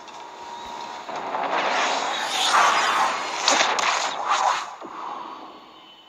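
A spaceship rushes through space with a loud whooshing roar.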